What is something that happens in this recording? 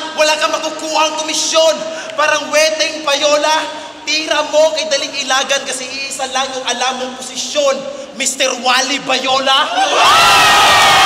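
A young man raps aggressively, shouting close by.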